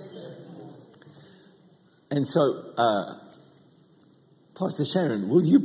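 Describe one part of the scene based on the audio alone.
A middle-aged man speaks with animation into a microphone, in a large echoing hall.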